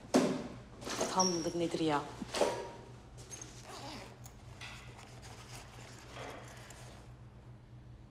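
A bag's fabric rustles as hands handle it.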